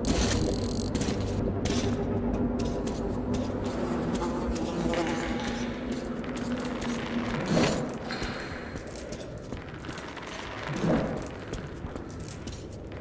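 Footsteps crunch over rubble and debris.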